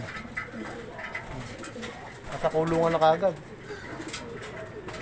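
Pigeons coo softly close by.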